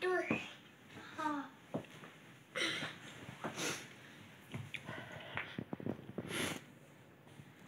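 A young child shouts and squeals playfully nearby.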